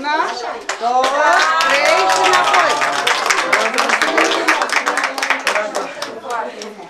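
Women clap their hands in rhythm.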